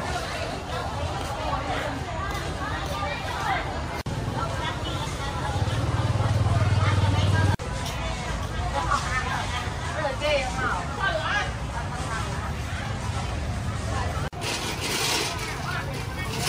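A crowd of market shoppers and vendors chatters in the background.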